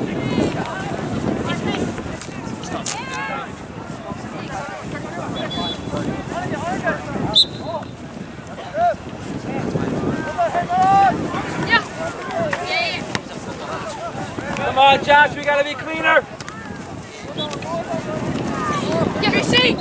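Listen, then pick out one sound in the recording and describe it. Young men shout and call to each other outdoors across an open field.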